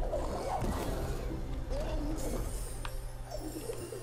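Bursts of magic crackle and pop in quick succession.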